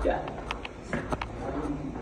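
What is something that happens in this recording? Footsteps echo along a stone corridor.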